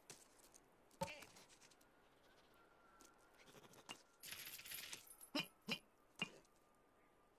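A heavy nut thuds down onto packed snow.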